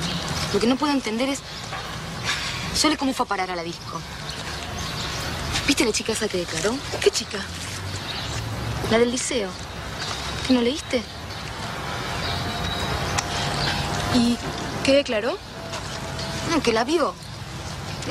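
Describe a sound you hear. Two young women talk with each other in turn, close by.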